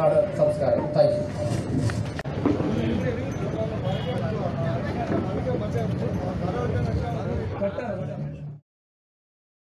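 A man speaks into a microphone, heard over loudspeakers in a large room.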